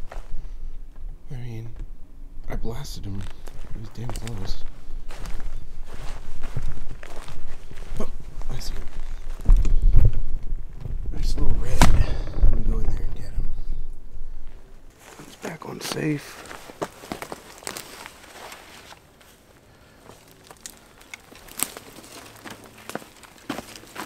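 Dry leaves and twigs crunch and rustle underfoot as someone walks through brush close by.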